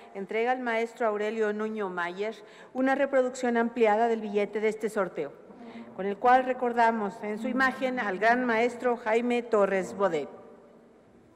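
A child sings out loudly in an echoing hall.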